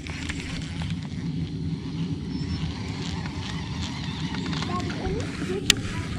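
A fishing reel whirs as its handle is turned.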